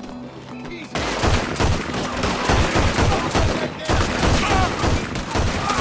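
Pistols fire in rapid, loud bursts of gunshots.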